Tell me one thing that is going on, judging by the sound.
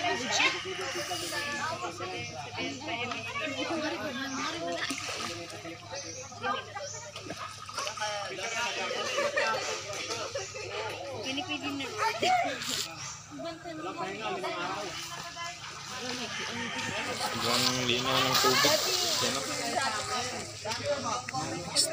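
Water splashes and laps as a person swims nearby.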